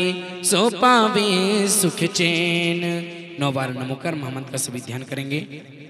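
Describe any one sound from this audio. Women clap their hands in rhythm.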